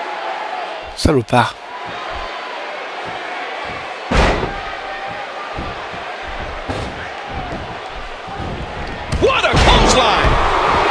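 Heavy thuds sound as a body slams onto a wrestling mat.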